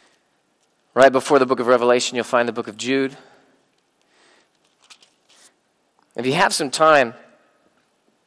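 A man reads aloud through a microphone, with pauses.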